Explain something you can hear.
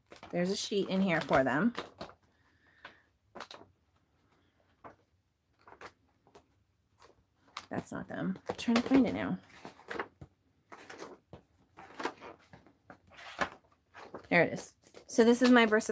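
Paper pages turn and rustle in a binder.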